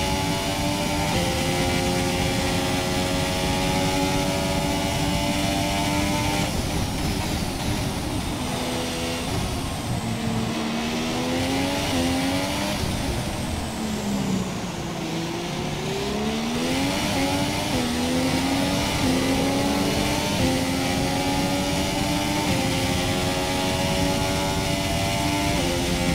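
A racing car engine screams at high revs, dropping in pitch while braking and climbing again as it accelerates through the gears.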